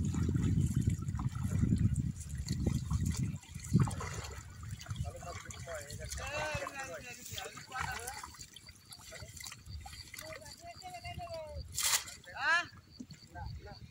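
Water splashes and sloshes nearby.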